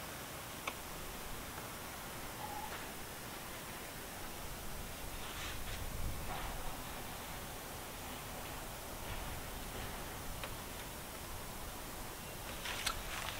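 Plastic pipe pieces scrape and click together as they are fitted.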